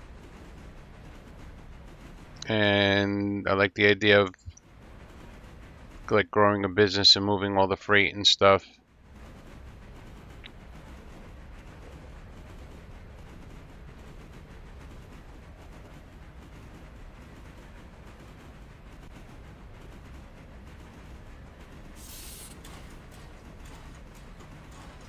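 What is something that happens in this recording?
A train's wheels clatter on the track.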